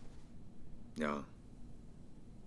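A man speaks a single short word calmly, close by.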